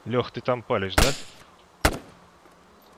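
A rifle fires two loud shots.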